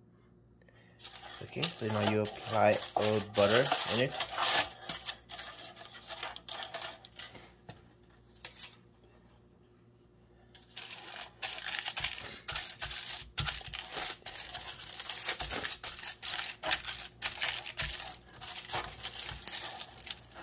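Aluminium foil crinkles and rustles under hands.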